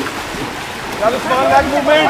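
A man jumps into the water with a splash.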